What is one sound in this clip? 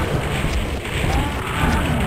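A gun fires a blast of fire with a loud whoosh.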